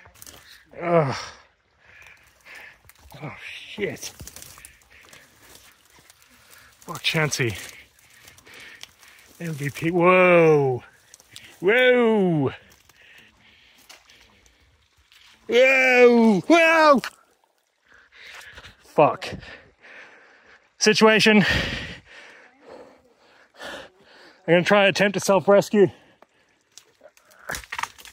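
Grass and twigs rustle as someone walks through them.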